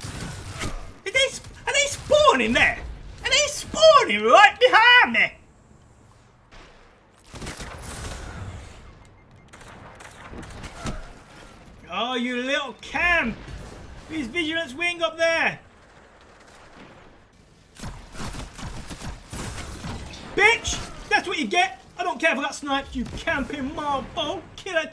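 A man shouts excitedly into a close microphone.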